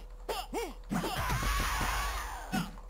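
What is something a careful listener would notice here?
A heavy blow lands with a loud, splattering thud.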